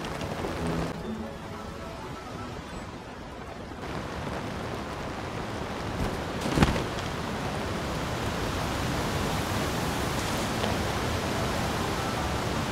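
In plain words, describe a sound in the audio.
Wind gusts and rushes past.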